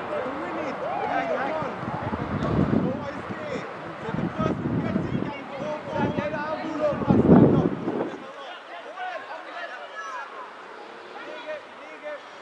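Young male players shout and call to each other outdoors on an open pitch.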